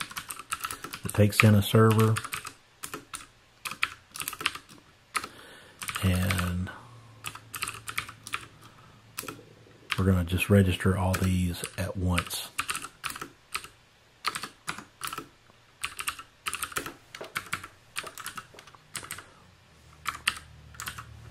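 A computer keyboard clicks with quick typing.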